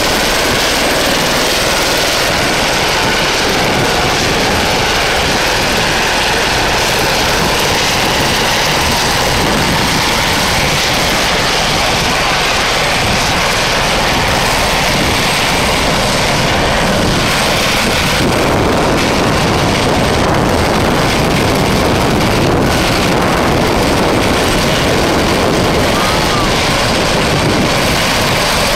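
A helicopter engine runs with a loud, steady whine and roar close by.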